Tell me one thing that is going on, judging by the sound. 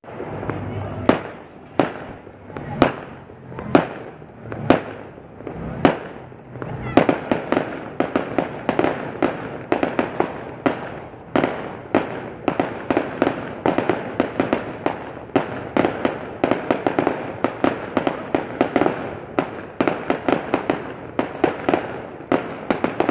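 Fireworks crackle and bang rapidly overhead outdoors.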